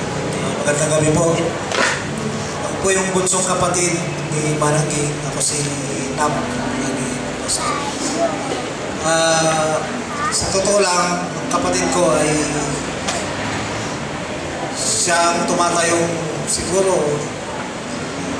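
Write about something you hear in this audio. A man talks calmly into a microphone, heard through a loudspeaker.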